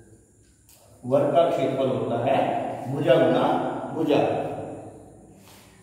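A middle-aged man speaks calmly, like a teacher explaining.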